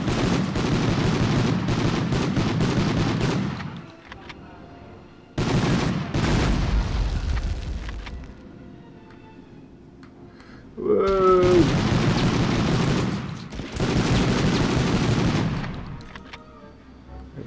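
A submachine gun fires in long rapid bursts.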